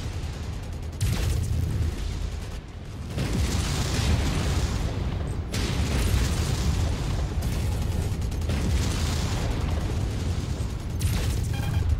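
Laser weapons buzz and crackle as they fire.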